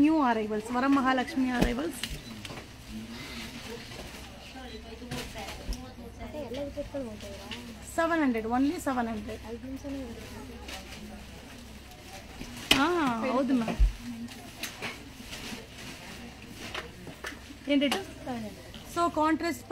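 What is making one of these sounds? A young woman talks calmly and close by.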